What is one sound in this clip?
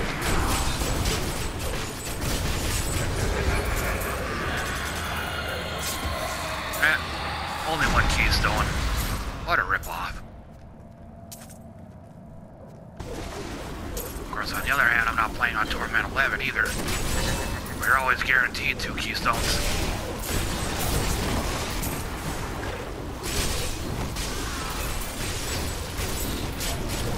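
Fiery spell blasts roar and crackle.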